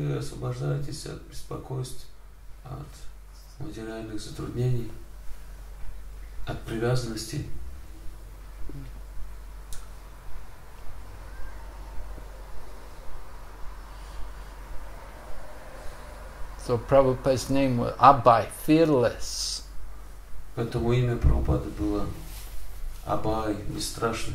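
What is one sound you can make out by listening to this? An elderly man speaks calmly and slowly, close by, with long pauses.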